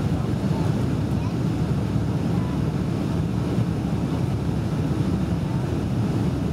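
Jet engines roar steadily, heard from inside an airliner cabin.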